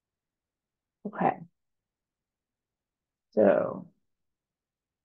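A young woman speaks briefly through an online call microphone.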